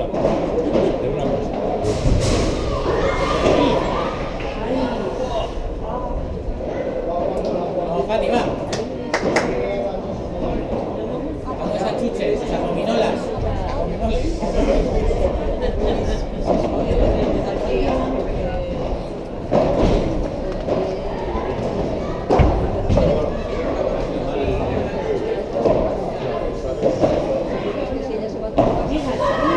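Young boys' voices call out across the court.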